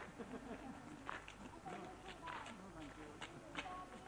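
Small footsteps scuff along a dirt path.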